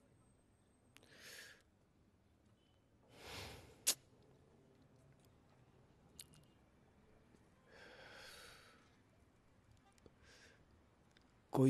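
A young man breathes out in heavy sighs close by.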